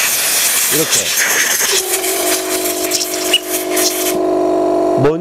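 Compressed air hisses loudly from an air gun.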